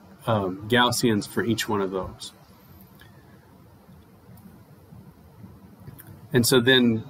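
An older man lectures calmly into a close microphone.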